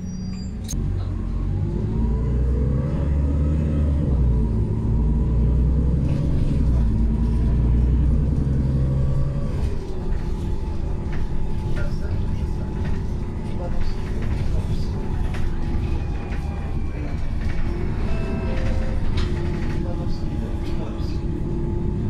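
A bus engine hums and whines as the bus drives along.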